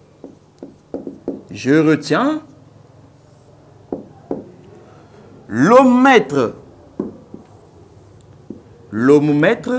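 A marker taps and squeaks on a whiteboard.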